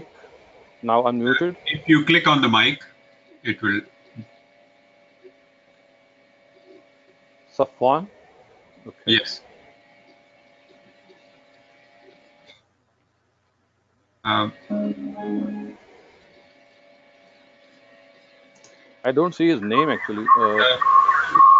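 An older man speaks calmly, in short bursts with pauses, heard through an online call.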